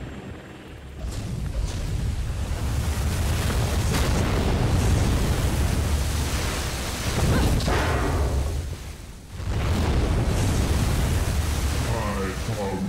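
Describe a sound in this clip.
A strong storm wind roars and howls.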